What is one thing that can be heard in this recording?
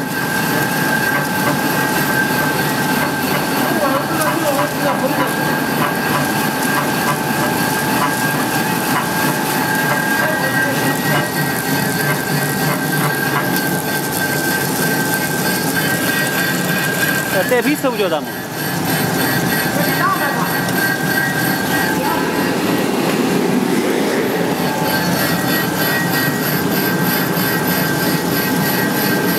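Rollers spin and rattle loudly.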